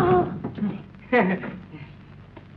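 A woman cries out loudly.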